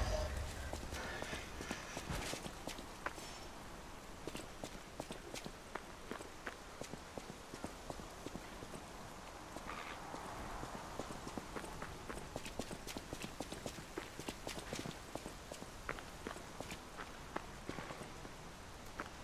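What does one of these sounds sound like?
Footsteps tread steadily on cobblestones.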